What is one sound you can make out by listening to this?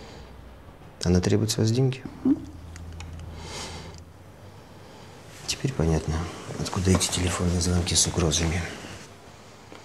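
A man speaks quietly and calmly nearby.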